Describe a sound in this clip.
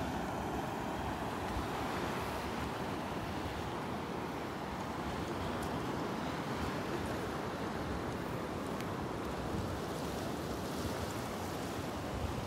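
Wind blows hard into the microphone outdoors.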